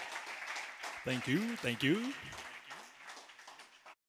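A man speaks into a microphone through a loudspeaker.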